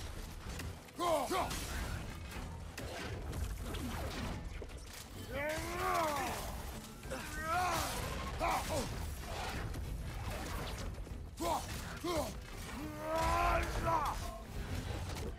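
A large beast roars and snarls.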